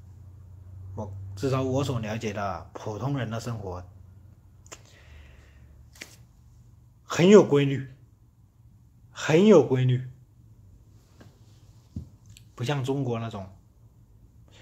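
A young man talks close to the microphone in short bursts, with pauses between.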